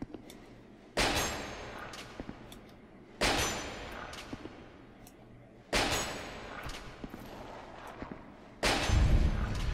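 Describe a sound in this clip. Heavy hammer blows strike a stone wall with a ringing echo.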